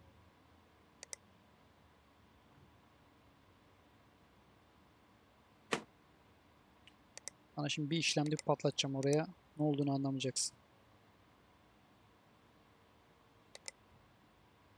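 Soft clicks sound now and then.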